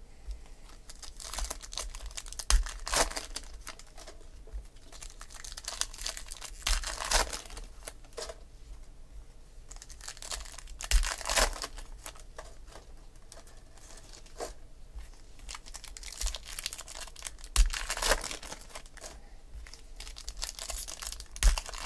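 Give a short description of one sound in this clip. Foil card packs crinkle and rip open.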